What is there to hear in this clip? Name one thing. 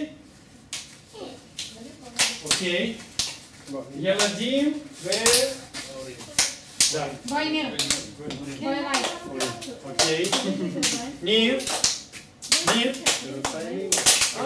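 A woman claps her hands along.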